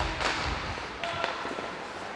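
Hockey sticks clack on the ice.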